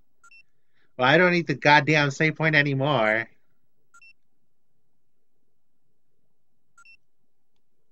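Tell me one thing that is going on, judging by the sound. A short electronic beep sounds a few times.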